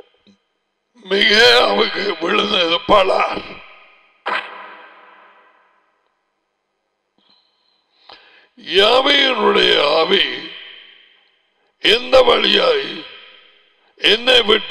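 A middle-aged man speaks with animation into a close headset microphone, in bursts with pauses.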